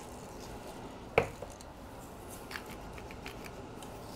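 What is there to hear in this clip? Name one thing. A pepper mill grinds.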